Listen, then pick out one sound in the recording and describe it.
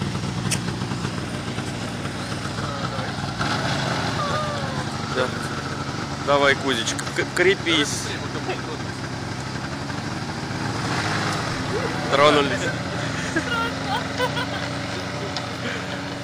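A snowmobile engine drones while towing a sled over snow.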